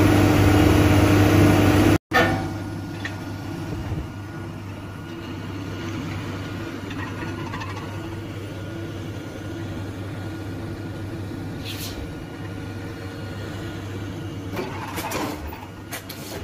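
A heavy machine engine drones steadily.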